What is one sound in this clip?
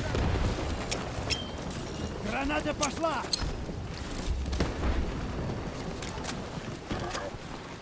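Gunshots crack sharply, one after another.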